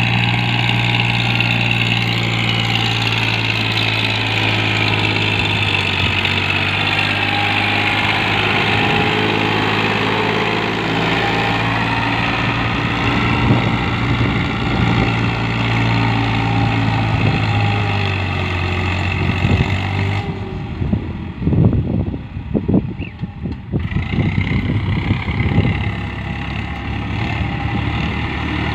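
A tractor diesel engine chugs steadily nearby.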